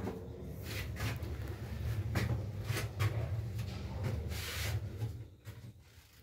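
An elevator car hums low and steady as it moves, then goes quiet.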